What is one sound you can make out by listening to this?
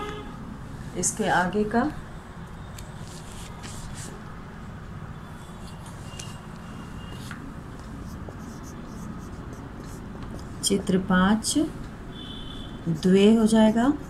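A woman speaks in short bursts, close by, in a calm teaching tone.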